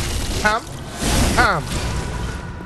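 A blade slashes and strikes with a wet splatter.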